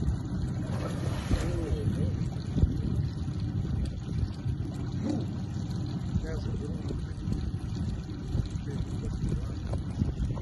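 Water sloshes as an animal swims.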